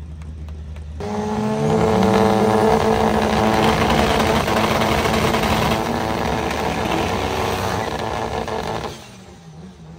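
Race cars roar off the line and speed away down a track.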